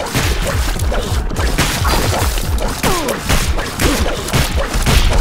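Rapid popping shots fire over and over in a video game.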